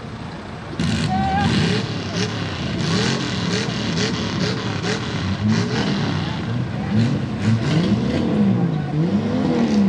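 Tyres spin and churn through wet mud.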